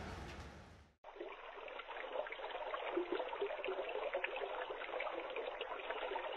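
Water splashes and laps as someone swims.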